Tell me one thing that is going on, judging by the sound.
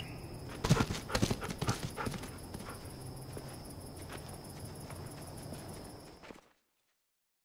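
Several people walk through tall grass with rustling footsteps.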